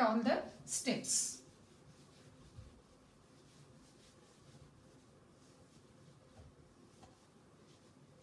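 A cloth wipes softly across a whiteboard.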